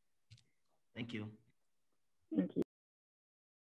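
A second young woman laughs softly over an online call.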